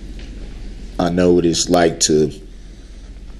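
A woman speaks briefly.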